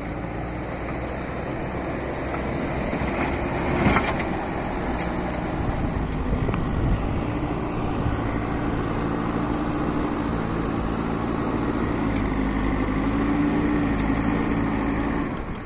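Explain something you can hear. Dirt scrapes and pours as a loader bucket pushes into it.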